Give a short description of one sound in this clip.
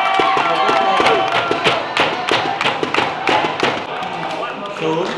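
Players clap their hands rapidly.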